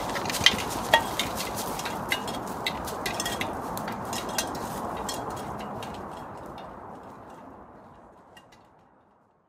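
Footsteps crunch on dry leaves outdoors.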